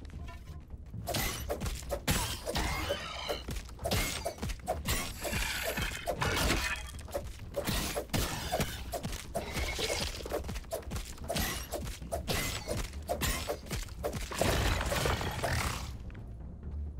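A weapon repeatedly thuds against a large insect's hard shell.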